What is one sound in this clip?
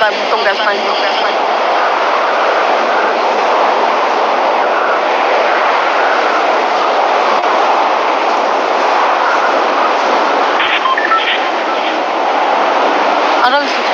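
Wind rushes steadily past a gliding skydiver.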